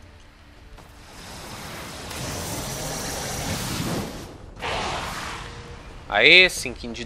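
A crackling, whooshing energy blast swells and then fades.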